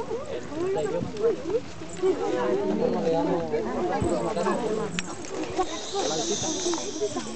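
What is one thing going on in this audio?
Children talk and murmur nearby.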